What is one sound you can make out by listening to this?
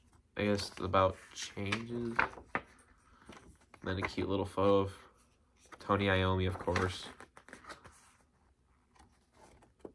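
A cardboard sleeve rustles in a young man's hands.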